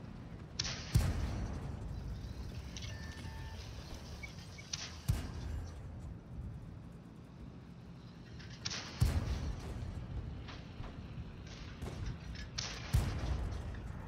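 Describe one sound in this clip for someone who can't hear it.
A tank cannon fires with loud booms every few seconds.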